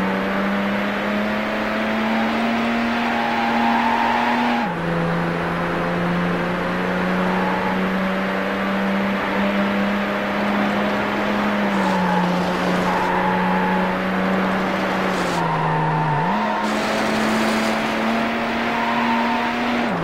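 A car engine roars steadily at high speed, shifting gears now and then.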